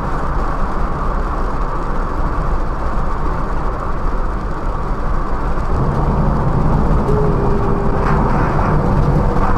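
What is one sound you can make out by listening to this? Tyres rumble on a wet road.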